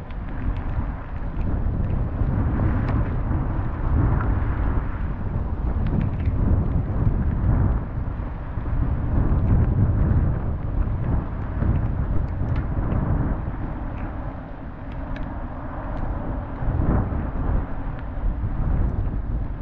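Raindrops tap against the car.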